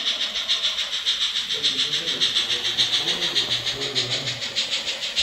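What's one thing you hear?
Small wheels click and hum on the rails.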